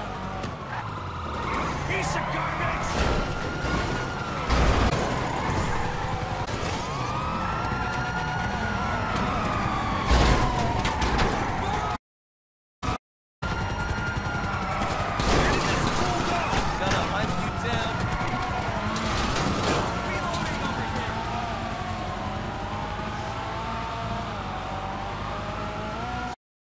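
A car engine roars and revs.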